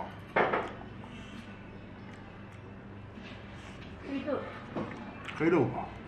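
A young man chews and slurps food noisily.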